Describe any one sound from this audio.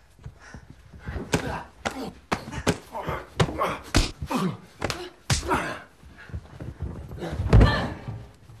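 Bodies scuffle and thud in a close struggle.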